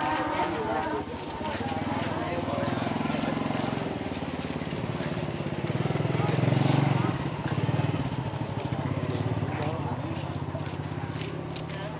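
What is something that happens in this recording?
A motorbike engine runs nearby with a low, steady rumble.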